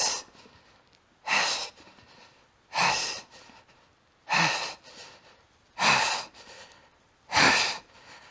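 A man exhales forcefully and rhythmically with each lift.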